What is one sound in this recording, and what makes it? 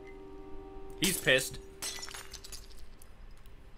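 A glass drops and shatters on a hard floor.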